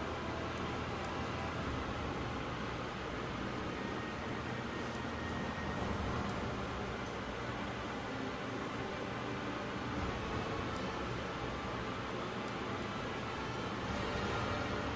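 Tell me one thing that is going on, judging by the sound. Soft menu clicks tick now and then as a cursor moves.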